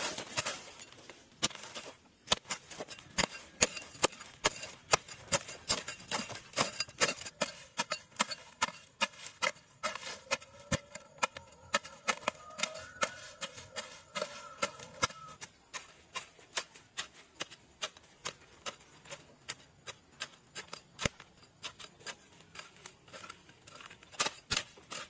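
A hoe chops into dry soil with repeated thuds.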